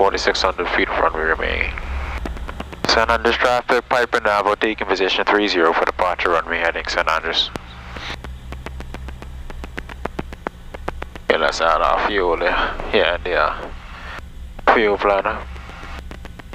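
A man speaks calmly over a headset radio.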